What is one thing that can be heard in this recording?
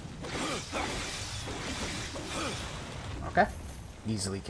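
Blades whoosh and slash in quick strikes.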